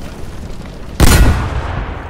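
An explosion booms close by.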